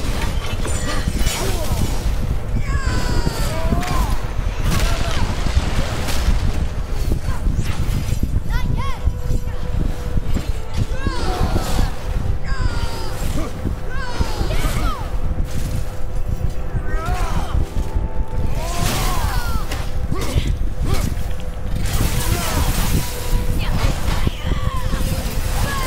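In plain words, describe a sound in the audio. Heavy impacts thud and crash.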